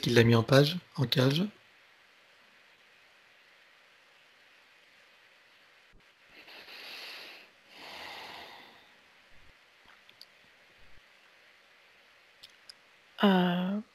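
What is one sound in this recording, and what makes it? A man speaks calmly and softly over an online call.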